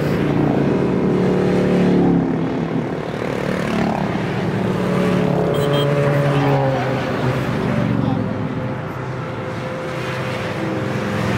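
Motorcycle engines rumble loudly as motorbikes pass close by one after another.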